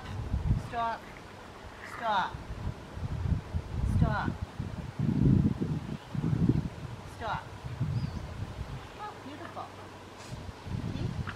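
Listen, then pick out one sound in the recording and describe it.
A woman speaks softly to a dog at a distance, outdoors.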